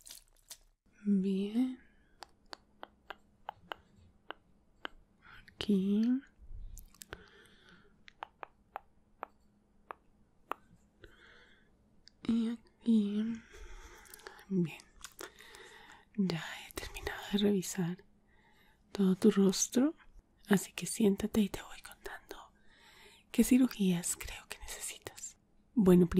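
A woman whispers softly close to a microphone.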